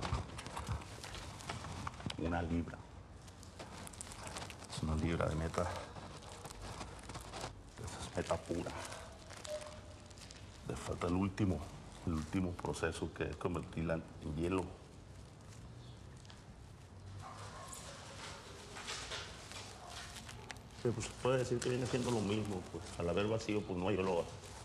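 Plastic wrapping crinkles as hands squeeze and handle a package.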